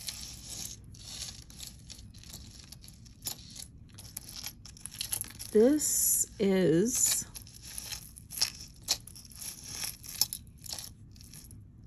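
Metal chains jingle and clink softly as they are handled.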